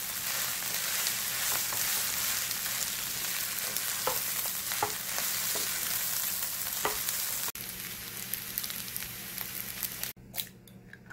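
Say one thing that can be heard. Rice sizzles loudly in a hot frying pan.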